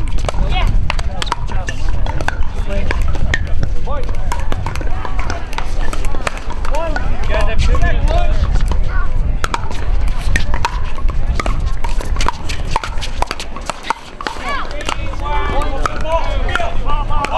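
Men and women chatter and call out nearby and across the courts.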